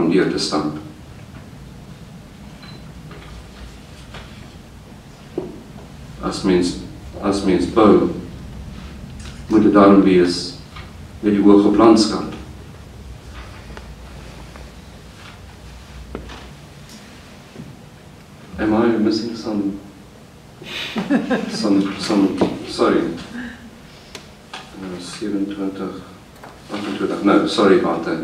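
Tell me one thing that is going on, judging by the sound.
A middle-aged man reads aloud slowly and calmly into a microphone, with long pauses.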